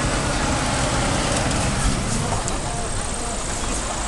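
A bus engine rumbles as the bus drives past close by.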